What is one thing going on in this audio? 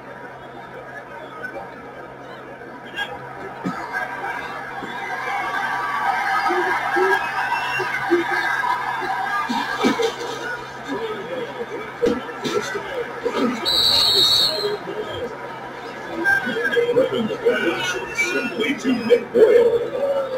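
A stadium crowd murmurs and cheers through a television speaker.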